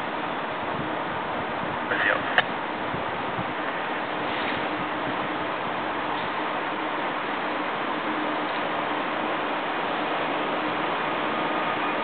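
A train rumbles closer on the tracks, slowly growing louder.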